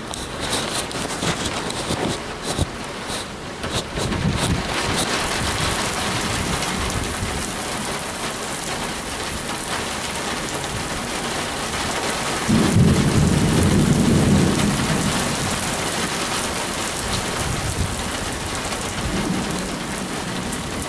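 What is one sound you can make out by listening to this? Gusty wind blows.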